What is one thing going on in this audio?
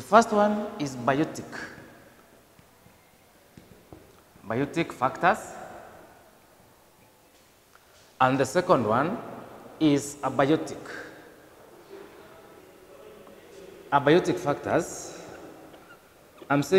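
A man speaks in bursts, explaining calmly in a slightly echoing room.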